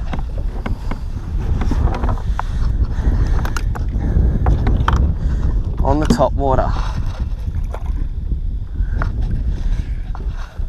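Small waves lap against a plastic kayak hull.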